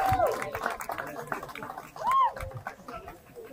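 A crowd outdoors cheers and whistles.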